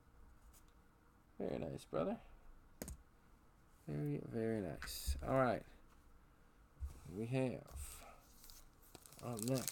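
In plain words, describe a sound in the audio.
Card packs rustle and tap.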